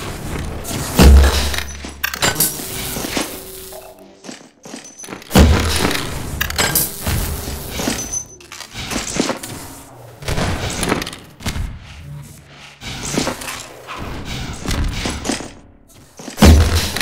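A crossbow fires with a sharp thump.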